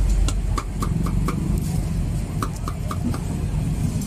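A knife slices cucumber on a wooden board with light taps.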